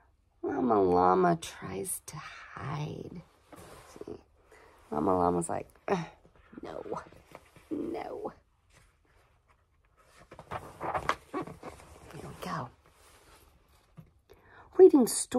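A woman reads aloud expressively, close to the microphone.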